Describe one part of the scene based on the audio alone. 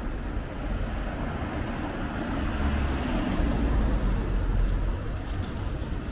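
A van passes close by with an engine rumble.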